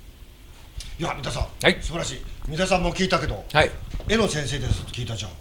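A man speaks calmly into a nearby microphone.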